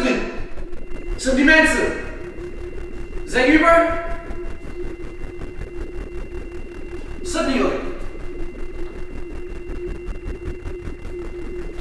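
Footsteps echo slowly along a hard hallway floor.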